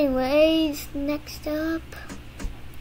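A woman speaks briefly in a high, sing-song voice close to a microphone.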